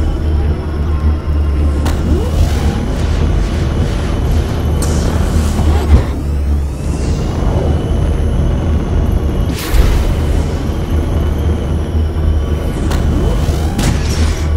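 A racing craft's jet engine roars steadily at high speed.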